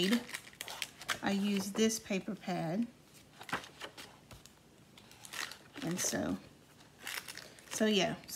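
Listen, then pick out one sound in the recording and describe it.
Sheets of stiff paper rustle and flap as they are turned over.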